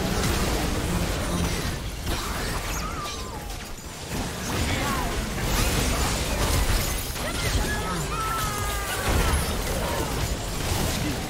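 Magic spells blast and crackle during a fast battle.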